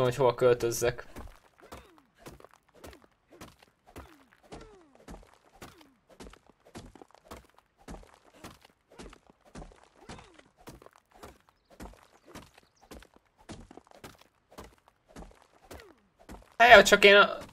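A pickaxe strikes rock again and again in quick, steady blows.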